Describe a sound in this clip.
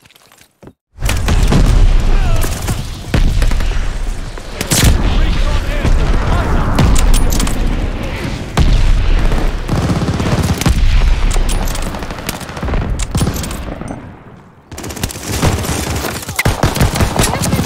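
Gunshots crack and echo in quick bursts.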